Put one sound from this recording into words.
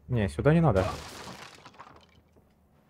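Wooden boards smash and splinter.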